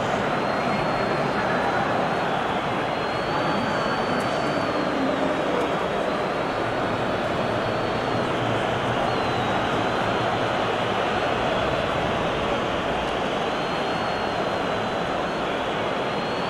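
A large stadium crowd roars steadily.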